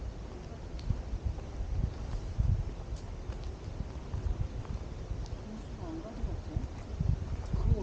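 Footsteps crunch slowly on a dirt path outdoors.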